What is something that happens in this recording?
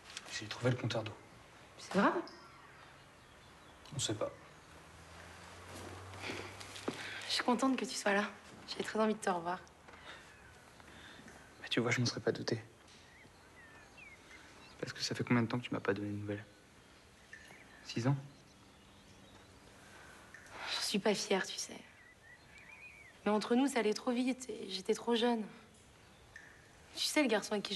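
A young man speaks quietly close by.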